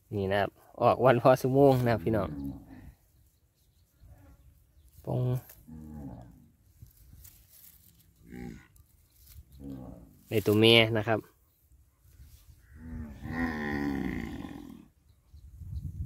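A calf bleats loudly nearby.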